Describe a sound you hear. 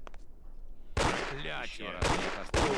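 A man speaks loudly and threateningly.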